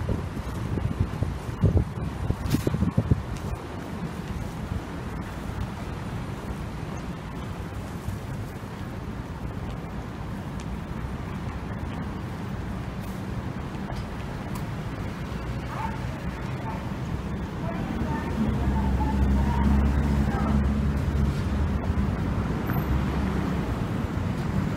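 Traffic hums steadily on a nearby street outdoors.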